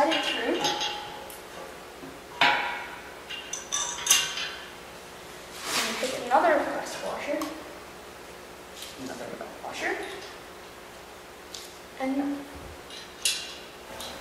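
Metal tubing clanks and rattles.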